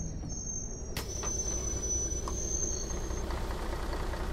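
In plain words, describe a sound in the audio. A bus door hisses open.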